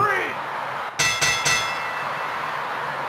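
A bell rings rapidly several times.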